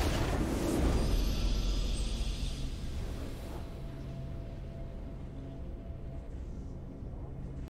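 A victory fanfare plays softly.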